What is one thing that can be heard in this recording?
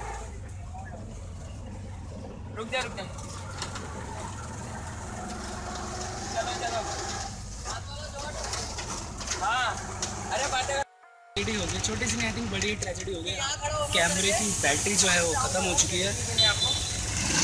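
An auto-rickshaw engine rumbles steadily.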